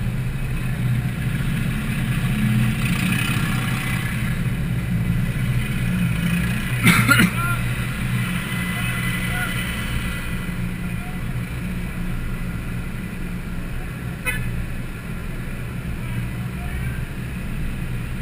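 A car engine hums steadily from inside the cabin as it drives slowly in traffic.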